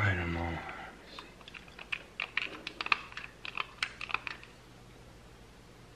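Pliers click softly as they crimp a wire connector.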